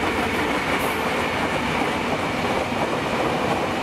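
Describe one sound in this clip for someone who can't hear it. A diesel locomotive engine drones as it pulls away.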